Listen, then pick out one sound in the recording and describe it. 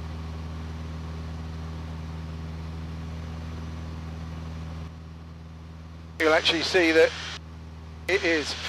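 A small aircraft engine drones steadily inside the cockpit.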